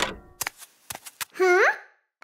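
A wooden door knocks and bangs shut.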